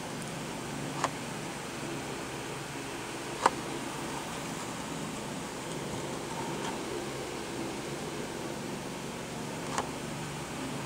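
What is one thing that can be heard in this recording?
A plastic blister package crinkles and clicks as a hand turns it.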